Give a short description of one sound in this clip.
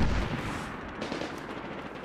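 A rifle fires a loud shot that booms and echoes.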